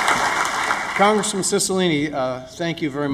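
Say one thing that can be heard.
A middle-aged man speaks calmly through a microphone in a large hall.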